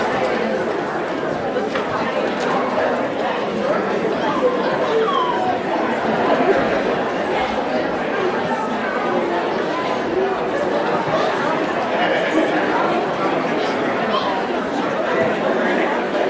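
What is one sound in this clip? Many people chatter at once in a large echoing hall.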